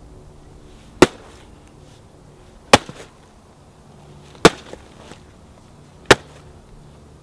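Loud sharp bangs go off one at a time, a couple of seconds apart, outdoors.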